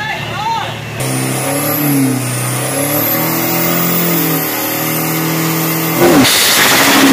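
A pickup truck's engine idles and revs in short bursts.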